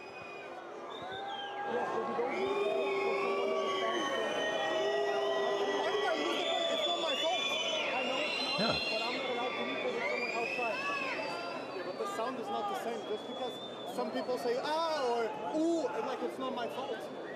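A crowd whistles and jeers loudly.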